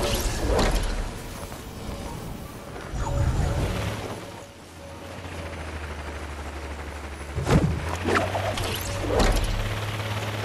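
Wind rushes steadily past during a long glide down.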